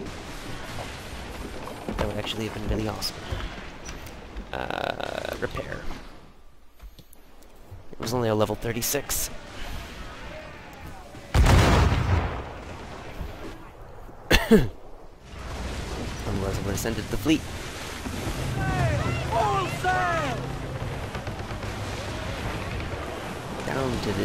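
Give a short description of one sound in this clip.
Cannons boom.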